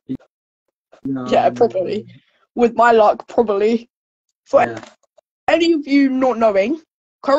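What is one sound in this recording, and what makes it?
A teenage girl talks with animation over an online call.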